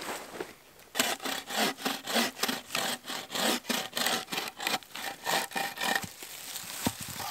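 Wooden sticks knock and scrape against each other.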